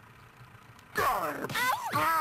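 A punch lands with a loud cartoon smack.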